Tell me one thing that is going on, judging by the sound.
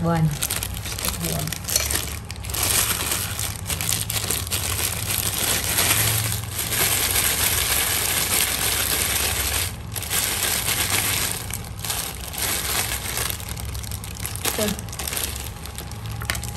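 Plastic food-prep gloves crinkle as hands roll a mixture into balls.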